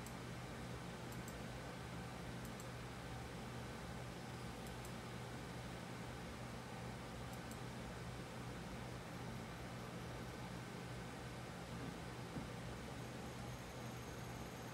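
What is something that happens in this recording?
A synthesizer holds a steady low tone.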